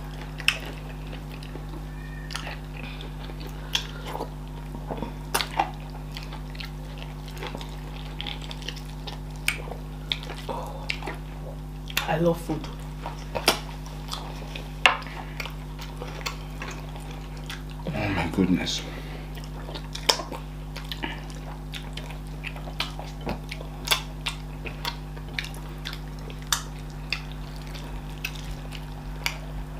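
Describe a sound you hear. Fingers squelch through soft dough and thick soup.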